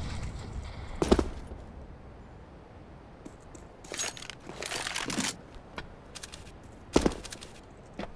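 A rifle fires loud, sharp shots that echo briefly.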